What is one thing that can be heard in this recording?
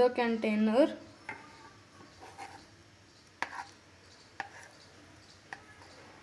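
A spoon scrapes thick batter from a bowl into a metal tin.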